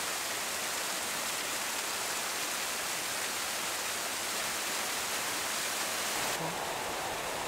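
Water rushes and splashes steadily down a small waterfall.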